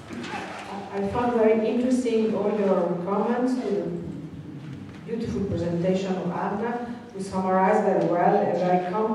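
A woman speaks steadily through a microphone over loudspeakers.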